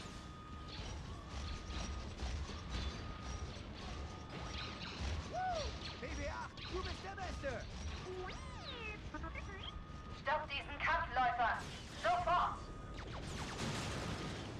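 Blasters fire in quick bursts.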